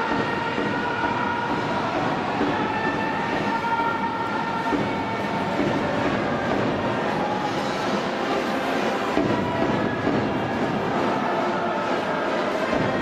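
A large crowd chants and cheers steadily in a big echoing stadium.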